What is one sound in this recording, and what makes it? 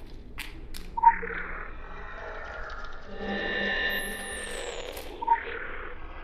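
A short bright chime rings as an item is picked up.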